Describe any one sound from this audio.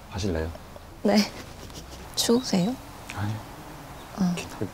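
A young woman answers softly and briefly.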